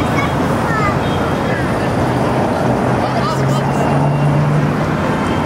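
A crowd of passers-by murmurs in the distance.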